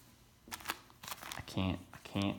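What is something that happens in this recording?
A plastic card sleeve crinkles.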